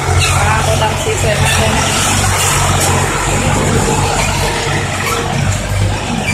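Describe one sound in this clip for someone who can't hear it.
A diesel truck engine idles with a steady low rumble.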